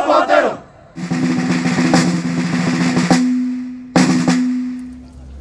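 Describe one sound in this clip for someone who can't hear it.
A snare drum plays a fast roll outdoors.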